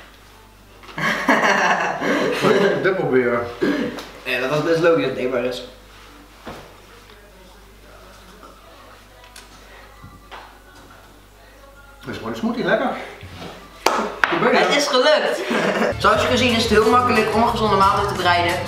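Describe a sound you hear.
A teenage boy speaks and laughs close by.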